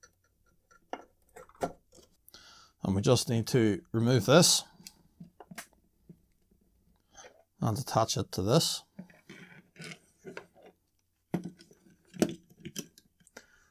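Small plastic and metal parts click and clatter as they are handled.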